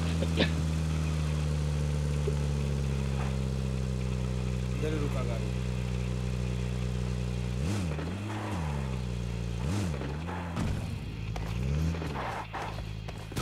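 A vehicle engine drones steadily, then revs up and down in bursts.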